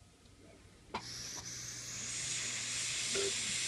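A heat gun blows with a steady rushing hiss.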